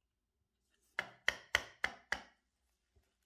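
A small metal sieve is tapped sharply several times.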